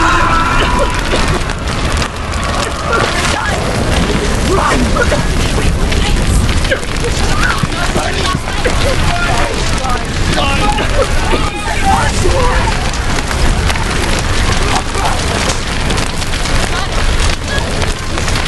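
Fire roars and crackles loudly all around.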